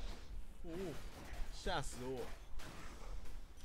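Blows strike enemies with sharp impacts.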